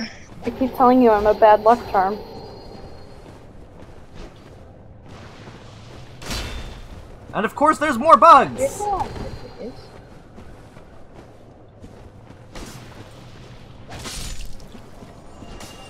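Sword blows strike and clang in quick bursts.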